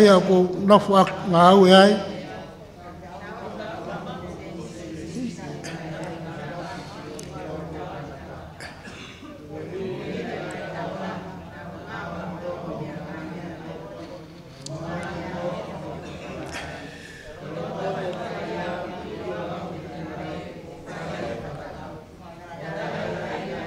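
A middle-aged man speaks calmly into a microphone, reading out in a steady voice.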